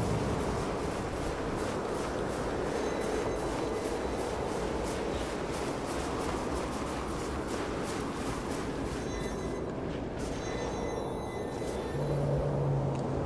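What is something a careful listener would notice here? Wind blows steadily, with a soft hiss of drifting snow.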